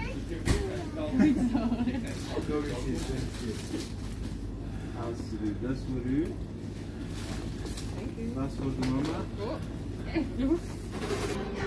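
A young woman talks softly to a small child close by.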